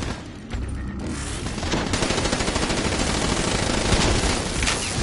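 Automatic gunfire rattles rapidly and loudly.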